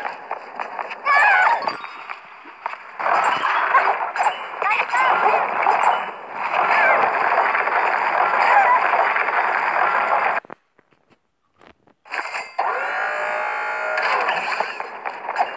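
Cheerful video game music and sound effects play.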